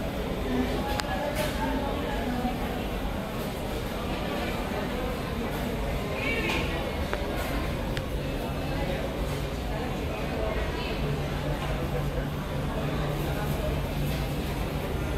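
A small plane's propeller engines drone steadily, heard from inside the cabin.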